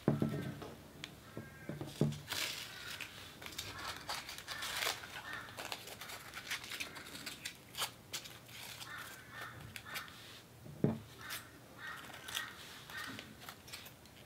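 Scissors snip through paper up close.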